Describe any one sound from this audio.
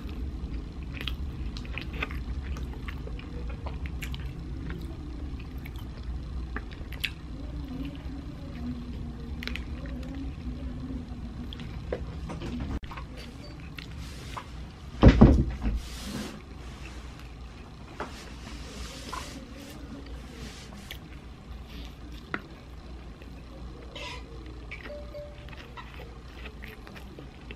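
A person chews food noisily and close up.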